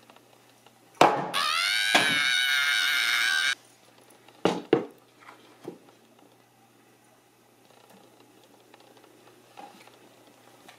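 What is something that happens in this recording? A mallet knocks sharply on a wooden board several times.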